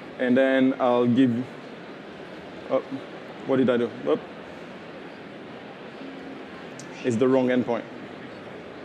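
A man speaks calmly through a microphone in short phrases.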